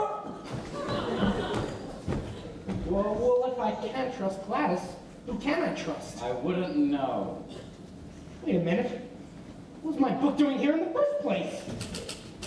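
A young man speaks with animation, heard from a distance in a large hall.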